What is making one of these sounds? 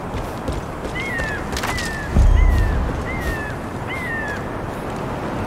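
A bird of prey cries several times overhead.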